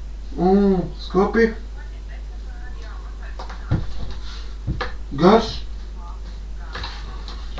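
Things knock and rustle on a wooden shelf.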